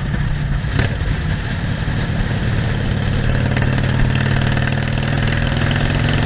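A Harley-Davidson Iron 1200 V-twin motorcycle engine rumbles as it accelerates down the road.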